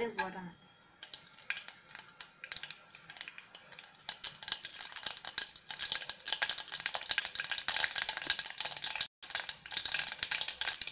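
Mustard seeds crackle and pop in hot oil, growing busier.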